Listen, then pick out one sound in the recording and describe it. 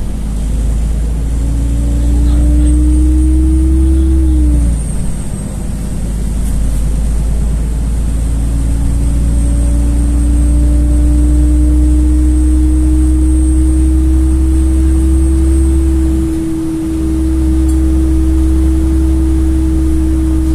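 A vehicle's engine whines, rising and falling in pitch.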